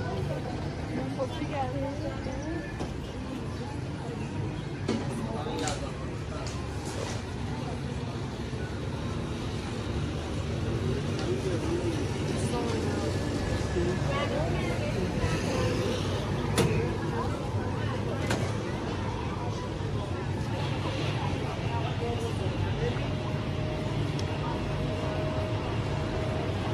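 Men and women chatter nearby outdoors.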